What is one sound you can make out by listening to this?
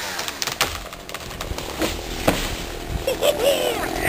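A tree cracks and crashes to the ground.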